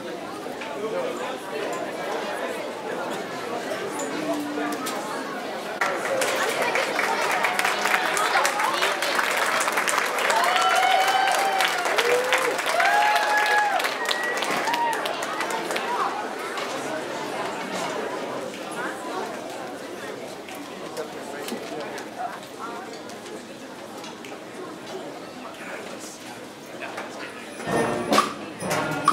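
A large audience murmurs and chatters in an echoing hall.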